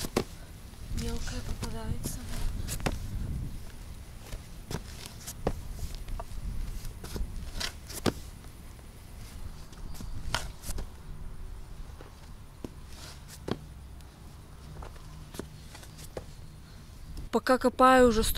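A shovel scrapes and digs into soil.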